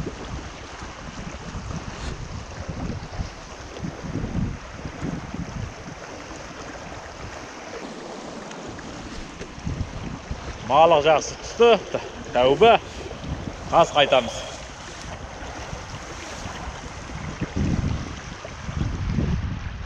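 A shallow river rushes and gurgles over stones.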